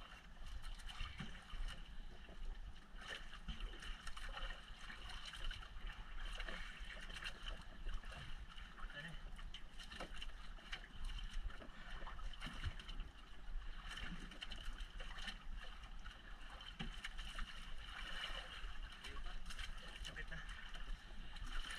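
A fishing reel clicks as line is wound in.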